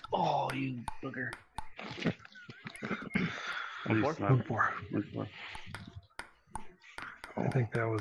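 A table tennis ball clicks sharply back and forth in quick taps.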